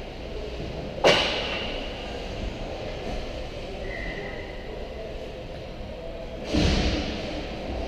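A sharp crack of a stick striking a puck rings out.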